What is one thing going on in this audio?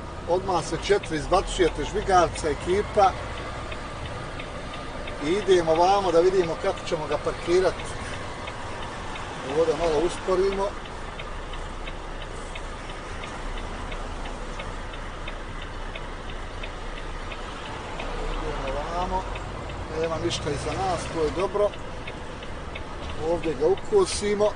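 A van engine hums steadily while driving.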